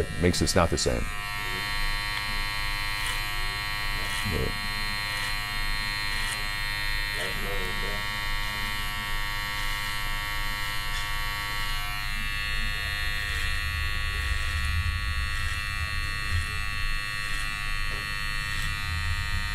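Electric clippers buzz steadily.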